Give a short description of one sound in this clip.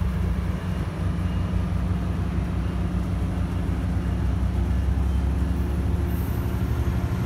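A passenger train rolls slowly along the tracks.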